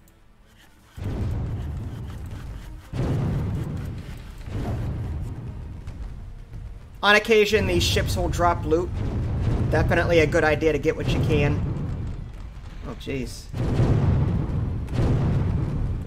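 Cannons boom in rumbling bursts.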